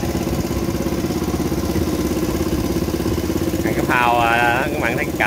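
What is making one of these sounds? An outboard motor drones steadily as a boat moves along.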